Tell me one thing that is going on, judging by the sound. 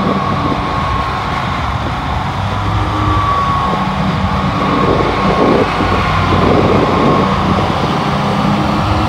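A riding lawn mower engine drones steadily close by.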